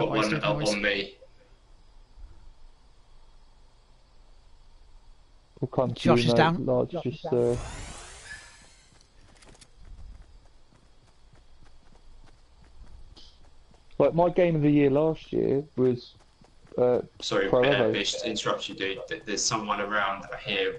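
A man talks casually into a microphone close by, in bursts with pauses.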